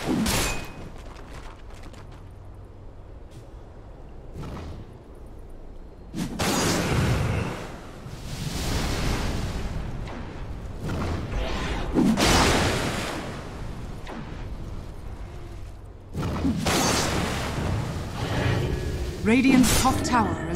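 Game spells and attacks burst and whoosh in a fantasy battle.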